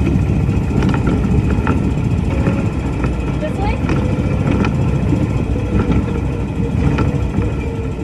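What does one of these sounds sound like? Hands tap and rub on a steering wheel.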